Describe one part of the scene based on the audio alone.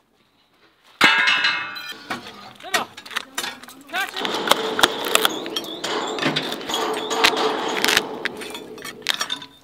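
A hammer knocks on steel bars with quick metallic taps.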